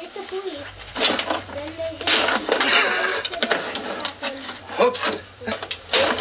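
A cloth rubs and wipes over a speaker cabinet.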